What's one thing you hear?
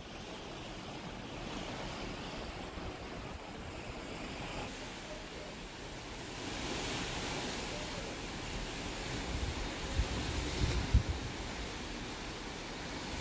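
Waves rush and splash against the hull of a ship below.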